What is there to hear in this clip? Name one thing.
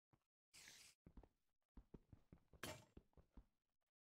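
An axe chops repeatedly at wood with dull, rapid knocks.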